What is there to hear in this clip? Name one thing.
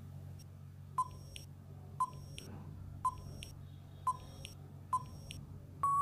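A countdown timer ticks once a second.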